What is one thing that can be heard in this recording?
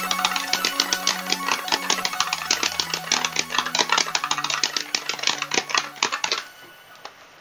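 Fast rock music with driving drums and guitar plays.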